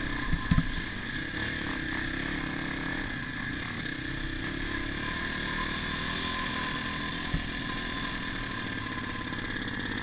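A dirt bike engine hums steadily up close.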